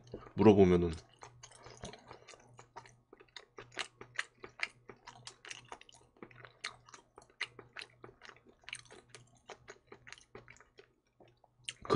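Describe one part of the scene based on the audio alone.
A young man chews food with soft, wet crunching sounds close to a microphone.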